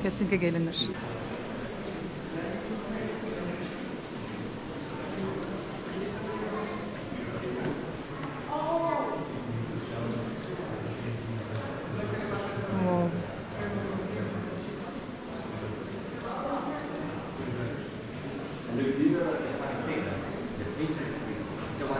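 Visitors murmur and chat in an echoing hall.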